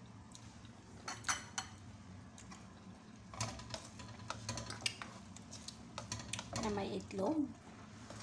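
A spatula scrapes and clatters in a frying pan.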